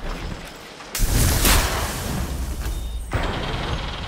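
Rapid gunshots crack close by.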